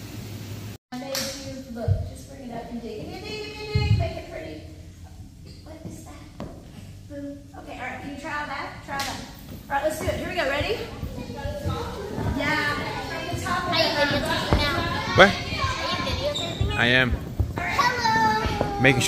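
Many young girls chatter and shout excitedly in a large echoing room.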